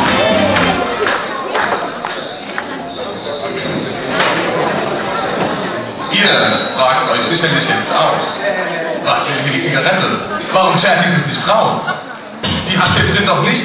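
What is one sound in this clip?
A man speaks with animation into a microphone, heard through loudspeakers in an echoing hall.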